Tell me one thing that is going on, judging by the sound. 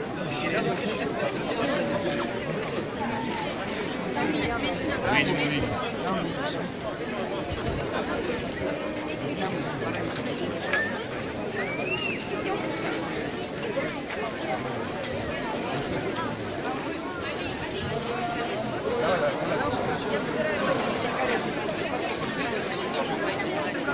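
A large outdoor crowd murmurs and chatters all around.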